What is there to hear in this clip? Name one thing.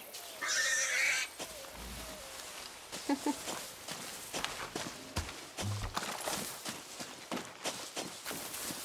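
Footsteps rustle through dense leafy brush.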